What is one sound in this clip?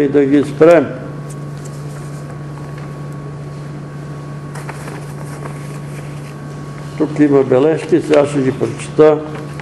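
An elderly man speaks slowly and deliberately, with long pauses between phrases.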